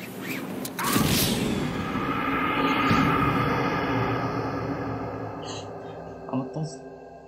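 A low, dramatic musical tone swells and slowly fades.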